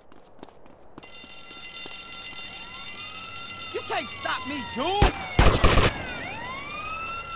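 A police siren wails nearby, rising and falling.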